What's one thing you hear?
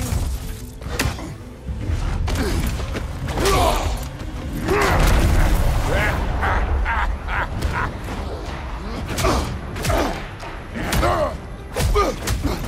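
Heavy blows land with thuds in a fight.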